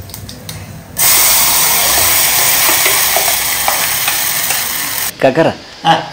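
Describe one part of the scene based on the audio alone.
Food sizzles loudly in a hot pot.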